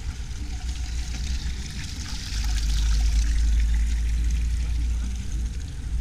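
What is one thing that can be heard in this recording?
Water trickles and splashes from a small fountain close by.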